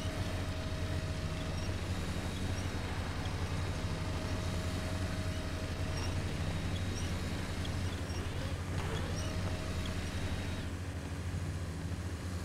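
A truck engine rumbles low and steady, straining as it climbs.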